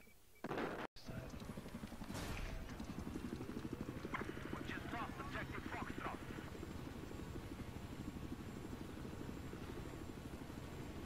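A helicopter's rotor thumps steadily close by.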